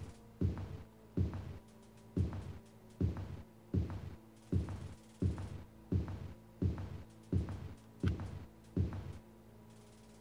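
Heavy footsteps thud at an even walking pace on a hard floor.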